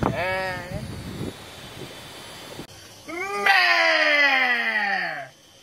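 A young man calls out in a drawn-out, sing-song voice close by.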